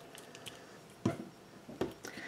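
A glue bottle is set down on a table with a knock.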